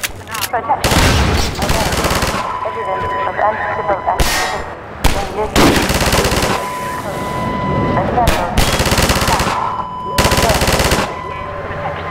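A gun fires in loud, rapid bursts that echo off hard walls.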